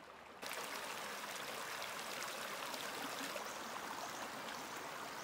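Shallow water trickles and babbles over rocks.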